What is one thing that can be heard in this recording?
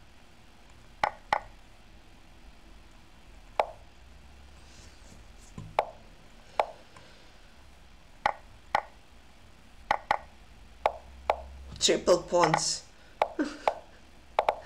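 Short sharp clicks of chess moves sound again and again.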